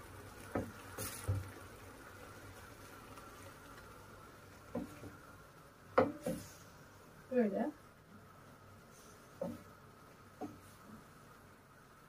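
A wooden spoon knocks and scrapes against a frying pan.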